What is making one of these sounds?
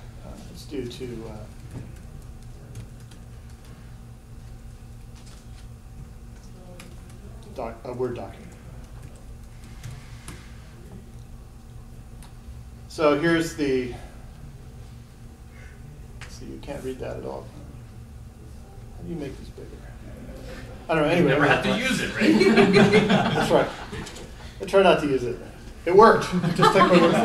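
A middle-aged man speaks calmly, pausing often.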